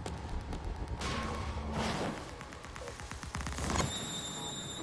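Flames roar in a loud burst.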